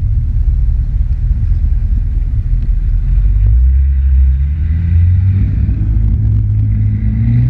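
A jet ski engine drones steadily at speed.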